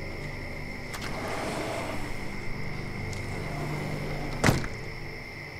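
A plastic bag rustles as it is carried.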